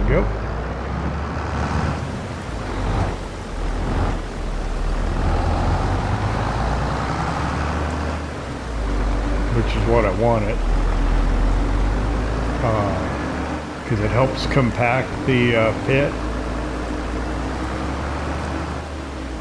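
A tractor engine rumbles steadily as the tractor drives along.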